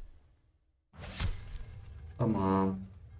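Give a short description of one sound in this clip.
A wax seal thuds down onto paper.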